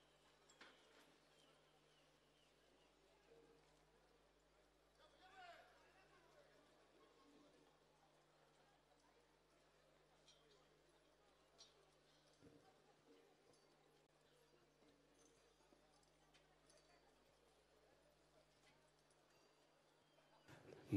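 Horses' hooves thud on soft dirt.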